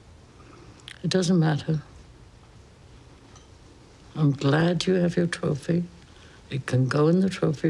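An elderly woman speaks calmly and slowly, close by.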